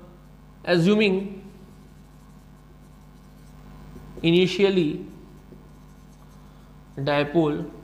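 A man speaks in short bursts, calmly explaining, close by.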